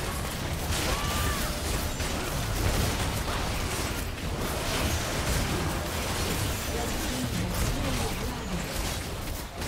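Game spells whoosh and crackle in a busy battle.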